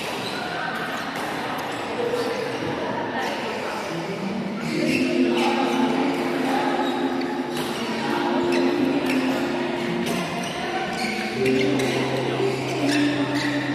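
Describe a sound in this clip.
Sports shoes squeak on a wooden floor.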